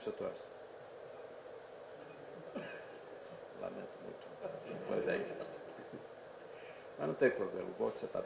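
A man speaks into a microphone over loudspeakers in a large room, with pauses.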